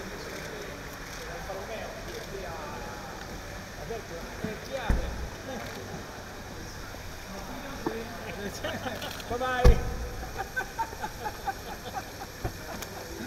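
Men talk nearby in low voices.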